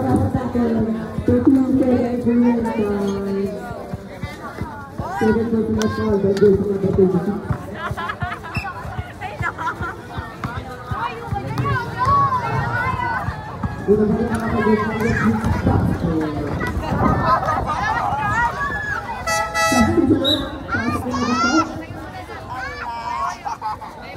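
A crowd of young people shouts and cheers outdoors.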